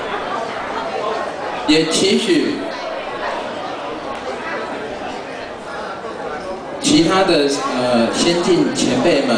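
A young man speaks into a microphone through a loudspeaker, reading out calmly in a large echoing hall.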